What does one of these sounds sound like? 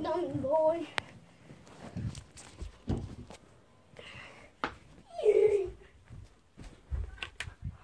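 Fingers bump and rub against the phone.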